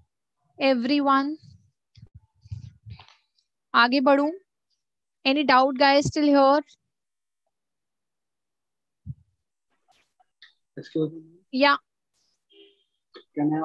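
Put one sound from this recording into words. A young woman speaks calmly through a microphone in an online call.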